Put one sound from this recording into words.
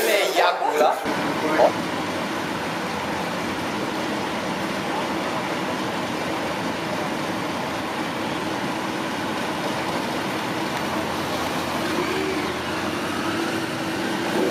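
Motorcycle engines idle and rumble steadily outdoors.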